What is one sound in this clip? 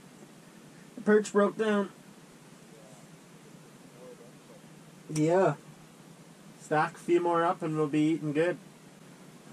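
A young man talks close by in short bursts.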